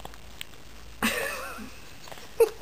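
A baby coos and squeals up close.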